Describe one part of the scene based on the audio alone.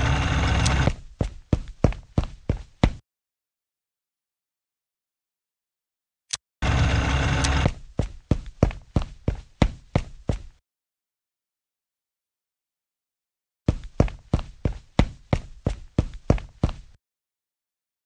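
Quick footsteps patter rhythmically.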